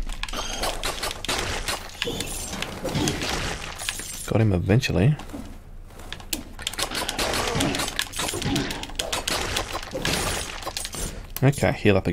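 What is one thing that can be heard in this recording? Swords slash and strike enemies in rapid hits.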